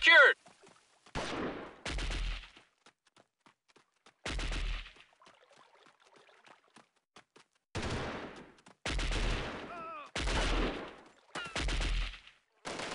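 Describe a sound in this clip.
Footsteps crunch on dry dirt ground.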